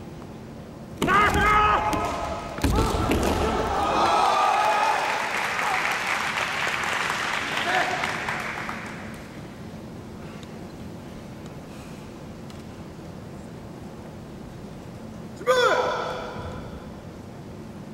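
Fencers shout loud, sharp battle cries in a large echoing hall.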